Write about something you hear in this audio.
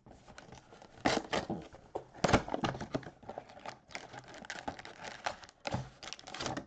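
Plastic wrap tears off a box.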